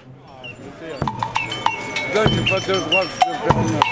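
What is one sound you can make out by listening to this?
A man strikes cymbals and metal drums on a clattering percussion contraption, with ringing clangs.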